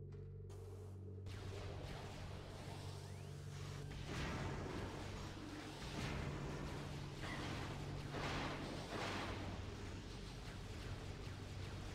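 Energy blasts fire in short bursts.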